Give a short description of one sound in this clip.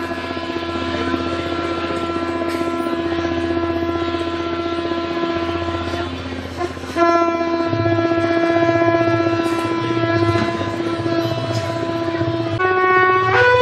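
A conch shell is blown in long, steady droning blasts.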